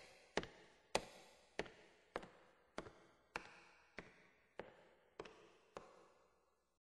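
A piano chord is struck repeatedly at an even pace, each ringing out and fading.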